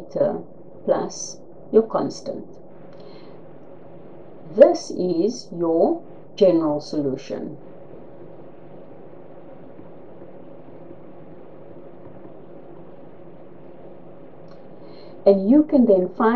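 A woman explains calmly into a close microphone, with pauses.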